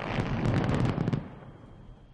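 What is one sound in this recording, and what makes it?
Debris clatters down.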